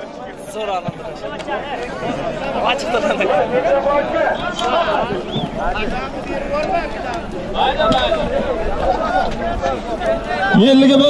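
A crowd of men shouts and calls out outdoors.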